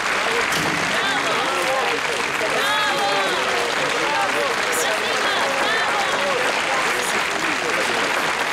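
A woman speaks warmly close by.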